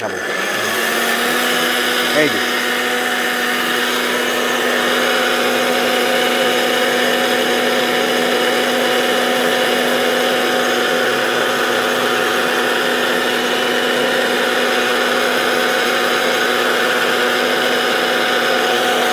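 A mixer grinder motor whirs loudly and steadily.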